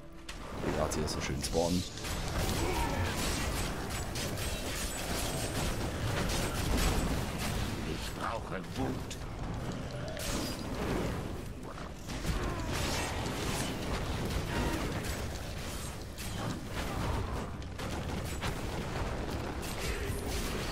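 Heavy blows and blasts crash again and again in a fight.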